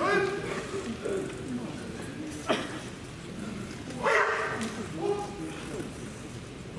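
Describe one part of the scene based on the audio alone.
Young men shout loud, sharp battle cries in a large echoing hall.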